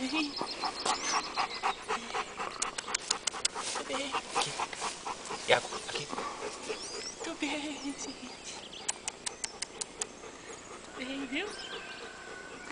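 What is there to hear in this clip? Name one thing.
A man talks playfully to a dog close by.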